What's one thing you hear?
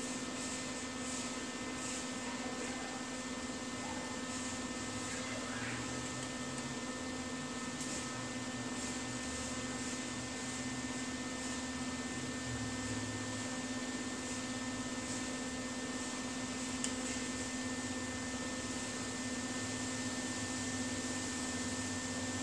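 An electric welder crackles and hisses steadily.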